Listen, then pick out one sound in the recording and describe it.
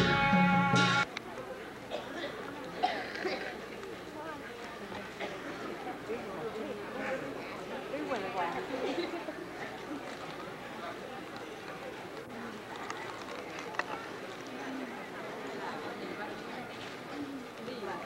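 A crowd of men murmurs and talks in a large echoing hall.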